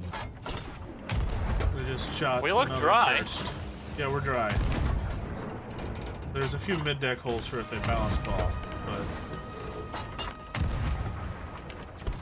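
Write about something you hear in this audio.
A ship's cannon fires several times.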